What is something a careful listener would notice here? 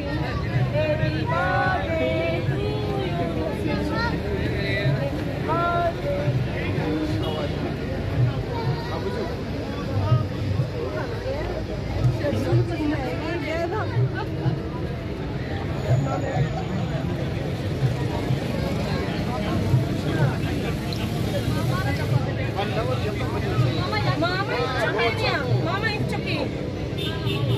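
A crowd of men and women chatter close by.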